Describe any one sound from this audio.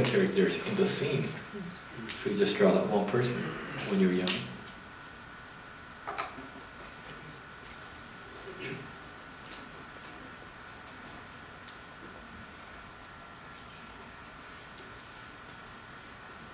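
A felt pen scratches softly across paper.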